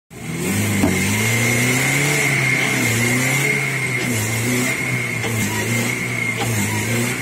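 A car engine runs and strains steadily close by.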